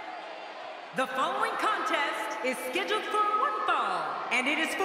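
A woman announces loudly through a microphone over the arena loudspeakers.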